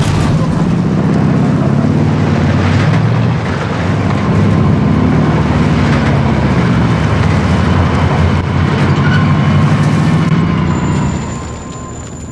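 A truck engine roars steadily and then cuts out.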